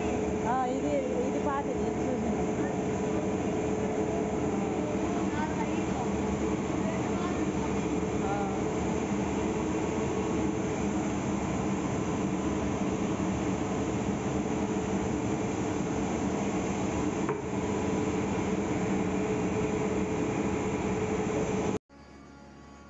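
Grain mill machines hum and rumble loudly and steadily.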